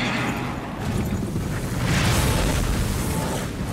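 Rocks burst apart and rubble crashes down.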